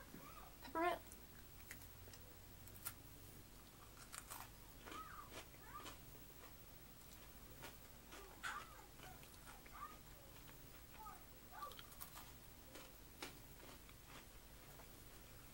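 A woman crunches on a hard pretzel snack.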